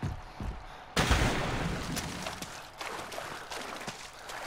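Feet splash and wade through shallow water.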